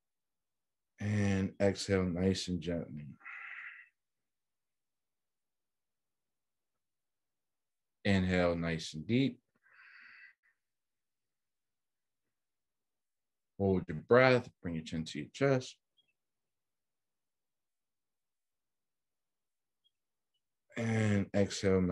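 A man speaks calmly in short bursts through a microphone on an online call.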